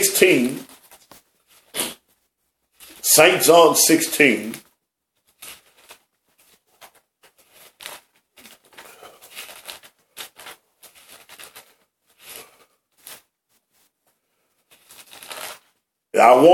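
Book pages rustle as they are turned.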